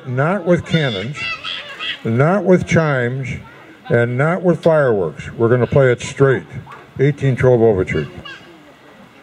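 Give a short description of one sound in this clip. An elderly man speaks calmly into a microphone through a loudspeaker, outdoors.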